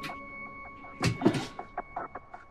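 A metal tap handle clicks as it is turned.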